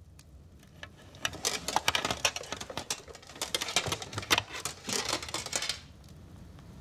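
Metal armour clanks and rattles as a helmet is put on.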